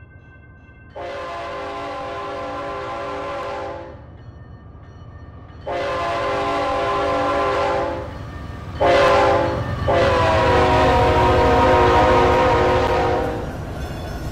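A locomotive horn blasts loudly several times.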